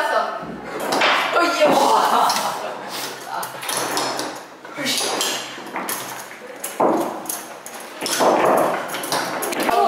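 Foosball rods clatter and the ball knocks against the little players.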